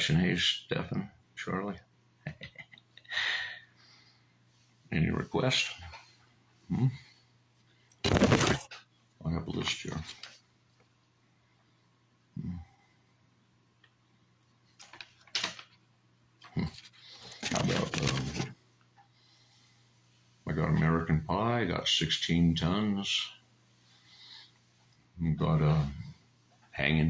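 A middle-aged man speaks with animation, close to a microphone, in short bursts with pauses.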